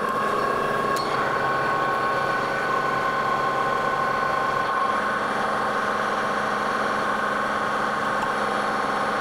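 A cutting tool shaves metal on a spinning lathe with a steady hiss.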